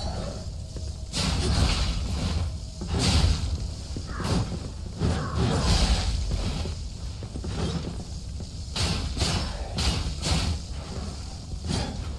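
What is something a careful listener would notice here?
Flames crackle and burst with whooshing blasts.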